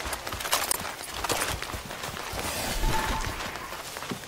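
Footsteps thud quickly on stone steps and dirt.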